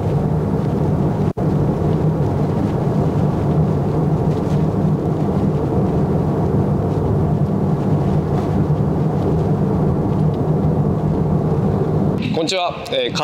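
An engine hums steadily as a car drives past on pavement.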